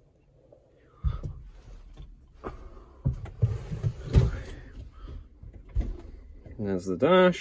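Knocks and rustling sound close by inside a cab.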